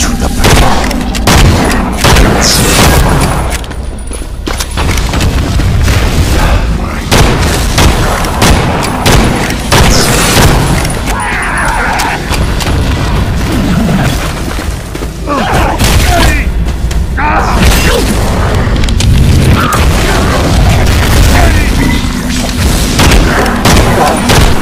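A gun fires in sharp shots.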